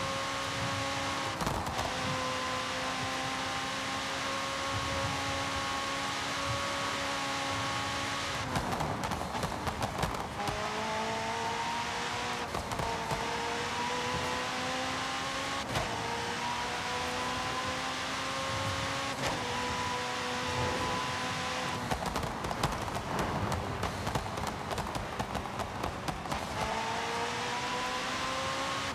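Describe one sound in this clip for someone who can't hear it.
A sports car engine roars at high speed, its pitch rising through the gears and dropping at each shift.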